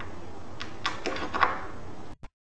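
A cable plug clicks and scrapes in a socket.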